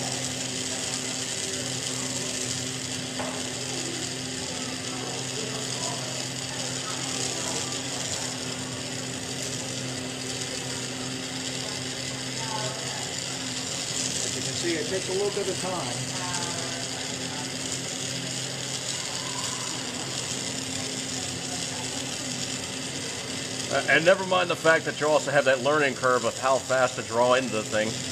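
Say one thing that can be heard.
A gas torch flame roars steadily.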